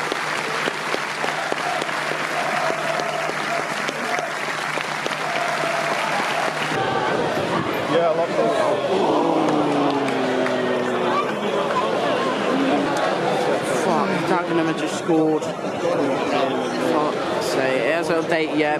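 A large crowd chants and sings in an open stadium.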